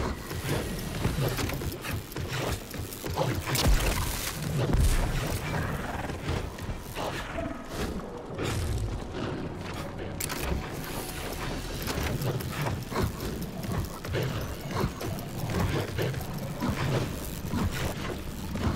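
An electric weapon crackles and zaps.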